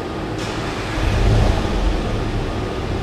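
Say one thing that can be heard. A car engine revs up briefly.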